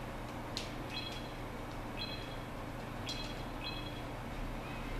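A retro video game menu beeps as the cursor moves.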